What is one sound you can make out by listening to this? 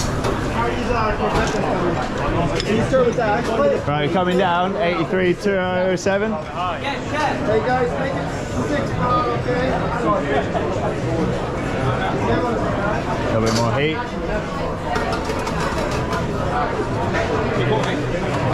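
Many people talk at once in a busy room.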